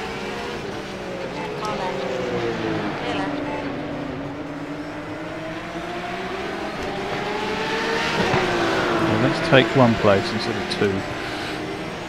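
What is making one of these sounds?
Other race cars whine past nearby.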